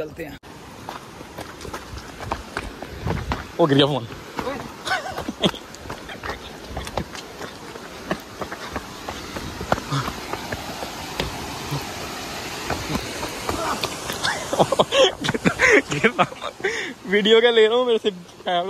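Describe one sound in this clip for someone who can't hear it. Footsteps crunch quickly on a rocky path.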